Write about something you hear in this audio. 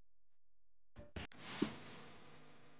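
Wooden toy blocks knock together as a stack settles.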